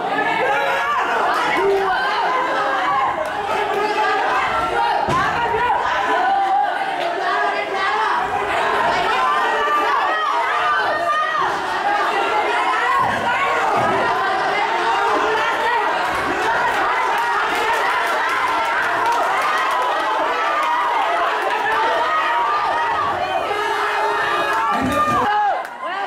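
A crowd of spectators shouts and cheers throughout in an echoing hall.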